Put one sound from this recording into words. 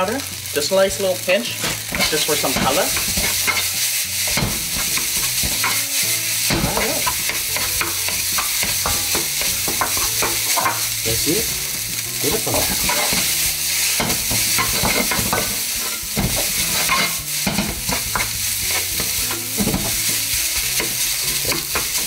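Rice sizzles steadily in a hot pan.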